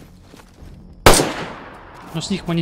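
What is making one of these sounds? A single rifle shot cracks and echoes.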